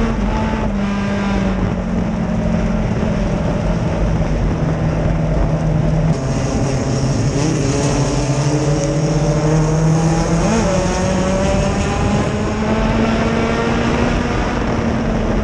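Dirt and gravel clatter against the car's body.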